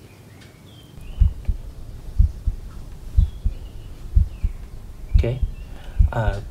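A heartbeat thumps steadily, heard through a stethoscope.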